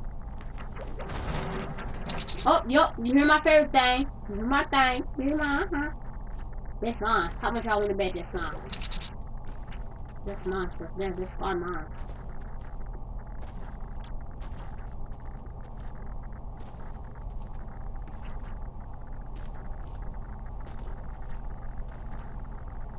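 Footsteps patter quickly on grass and dirt.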